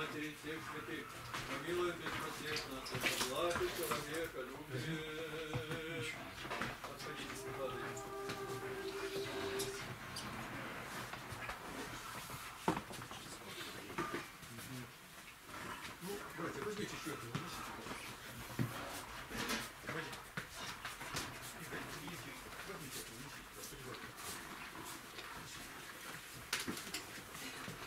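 Footsteps shuffle on a wooden floor.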